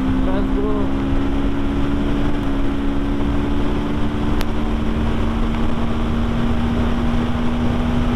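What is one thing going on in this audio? A motorcycle engine hums steadily at high speed.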